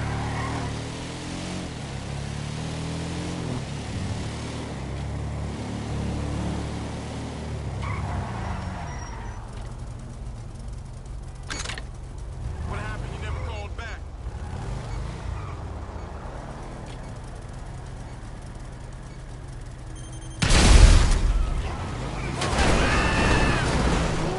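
A buggy engine revs and hums steadily.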